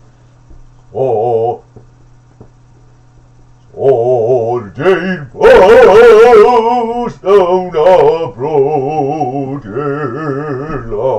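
A man grunts and breathes hard with effort.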